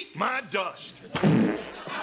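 A man shouts with excitement.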